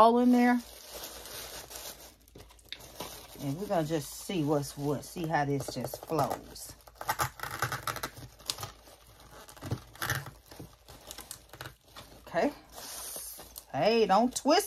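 Tissue paper crinkles and rustles.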